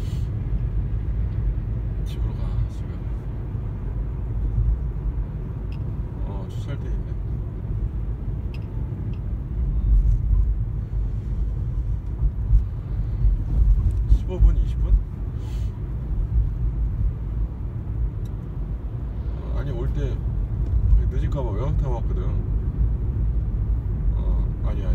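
A car's engine and tyres rumble low and steadily from inside the car.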